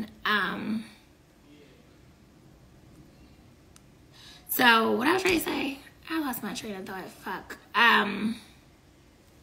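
A young woman speaks close to a microphone, calmly and with pauses.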